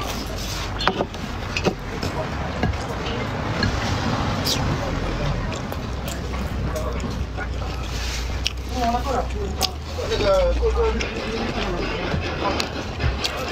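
A young woman chews food.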